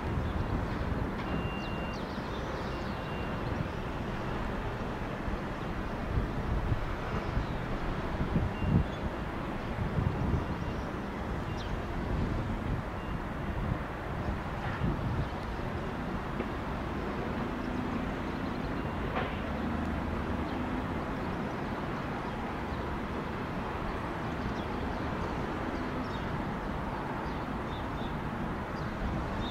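A jet airliner's engines roar steadily as it taxis nearby.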